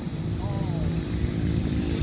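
A motorcycle rides past.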